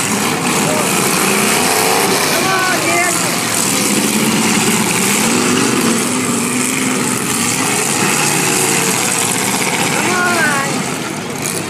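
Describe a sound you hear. Car engines roar and rev loudly nearby.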